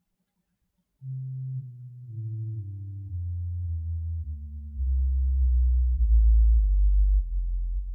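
An organ plays low, slow notes that swell louder.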